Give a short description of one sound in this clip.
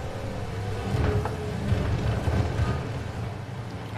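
A car crashes through objects with loud thuds and clatter.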